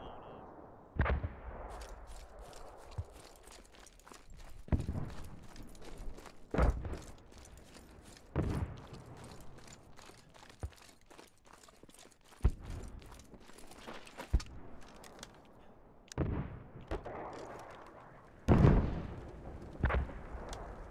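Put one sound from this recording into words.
A rifle fires loud single shots, each with a short echo.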